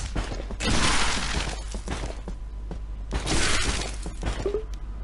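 A magical whoosh sweeps past.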